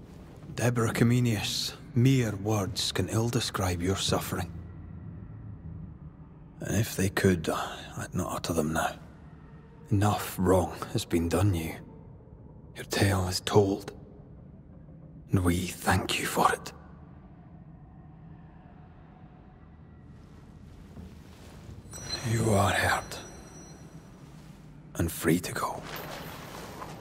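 A man speaks calmly and slowly in a deep voice, close to the microphone.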